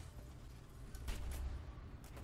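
A tank cannon fires with a sharp boom.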